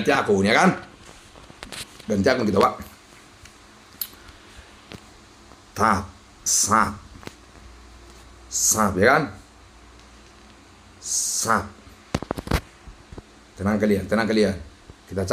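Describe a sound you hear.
A man talks close to a microphone in short, lively bursts.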